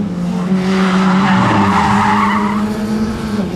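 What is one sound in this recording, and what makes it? A classic Mini's tyres squeal on asphalt in a turn.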